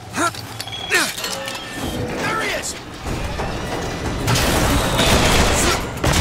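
A metal hook grinds and rattles along a rail.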